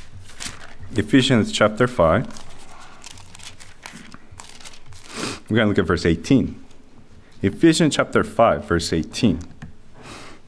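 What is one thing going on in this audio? A man speaks calmly into a microphone in an echoing room.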